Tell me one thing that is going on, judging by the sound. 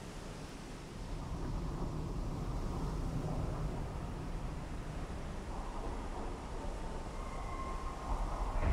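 A sinking ship creaks and rumbles loudly as it goes under.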